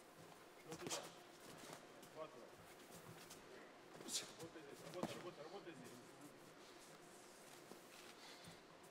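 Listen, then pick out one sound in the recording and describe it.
Boxing shoes squeak and shuffle on the canvas.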